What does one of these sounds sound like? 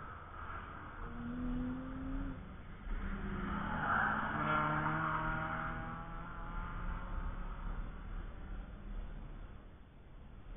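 A car engine roars past at speed and fades into the distance.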